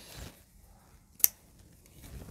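Scissors snip thread once.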